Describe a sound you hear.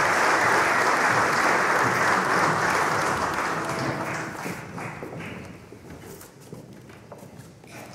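Boots thud and shuffle on a wooden stage as men walk about.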